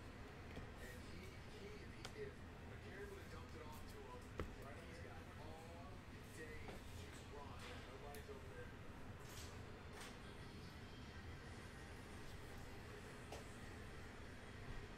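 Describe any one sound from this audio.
Trading cards rustle and flick between fingers.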